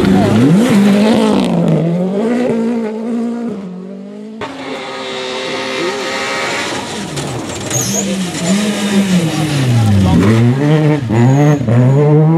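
Gravel sprays and patters from spinning tyres.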